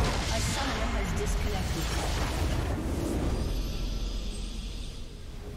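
A large structure explodes with a deep rumbling boom in a video game.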